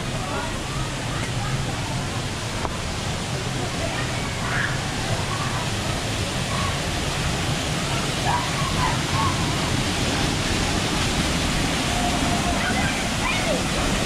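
A waterfall rushes and splashes steadily into a pool.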